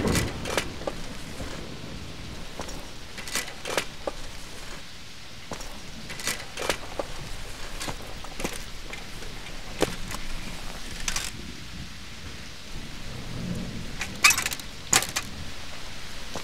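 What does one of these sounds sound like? Metal clicks and clanks as someone handles a bicycle.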